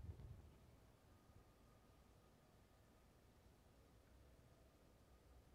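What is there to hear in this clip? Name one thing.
A clarinet plays a soft, held note.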